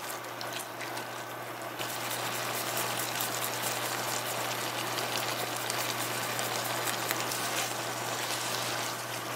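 A thick sauce sizzles and bubbles in a pan.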